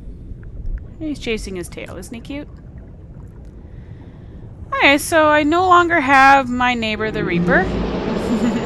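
A large sea creature lets out long, wavering moaning calls.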